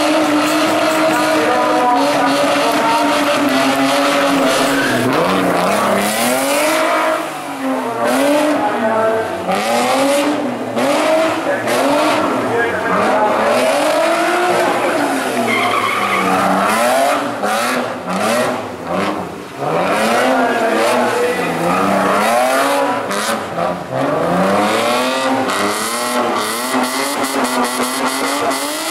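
A rally car engine revs hard and rises and falls in pitch as the car drifts.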